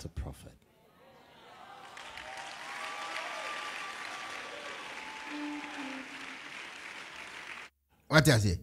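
A crowd laughs and cheers.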